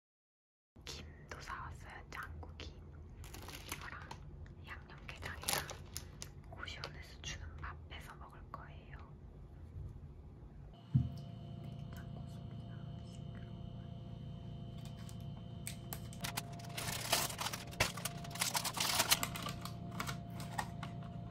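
A plastic wrapper crinkles in someone's hands.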